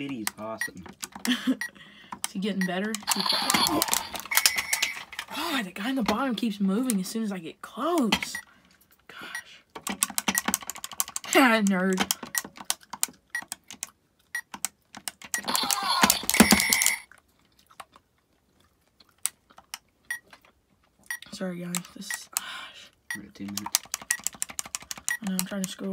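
Buttons on a small device click as they are pressed.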